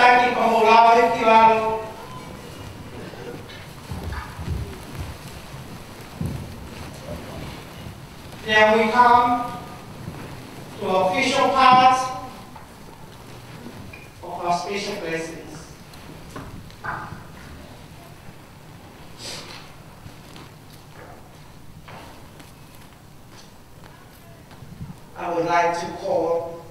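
A man calls out loudly in long, ringing phrases nearby.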